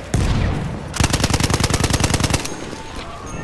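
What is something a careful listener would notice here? A machine gun fires rapid bursts of shots up close.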